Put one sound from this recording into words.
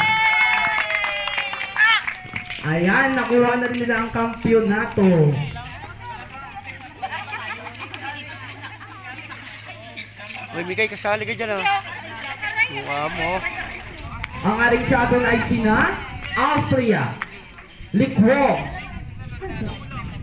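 A group of young women and men chatter and call out loudly outdoors.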